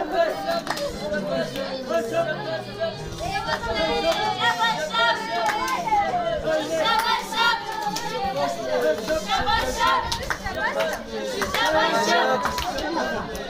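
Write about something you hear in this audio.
Several women sing together close by.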